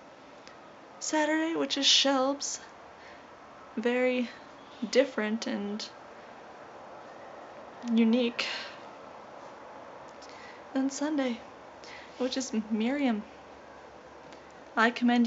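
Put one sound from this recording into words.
A young woman talks close up in short, animated bursts with pauses.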